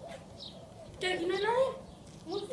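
A young boy speaks loudly close by.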